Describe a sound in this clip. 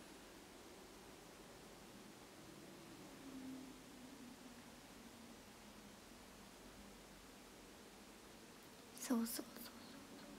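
A young woman speaks softly close to a microphone.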